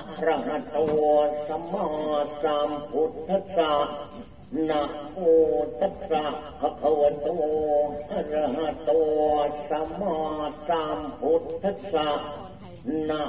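A man sings and chants loudly in a steady, wavering voice.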